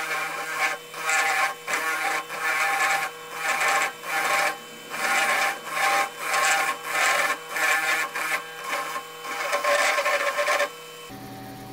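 Wood grinds against a spinning part in short, repeated bursts.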